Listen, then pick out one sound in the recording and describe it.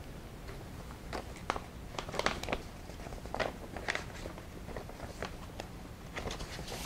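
Paper rustles and crinkles as an envelope is handled.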